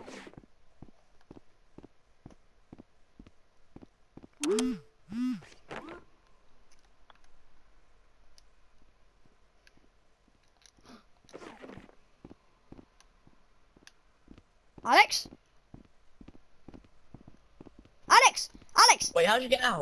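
Footsteps tread on a hard floor at a steady pace.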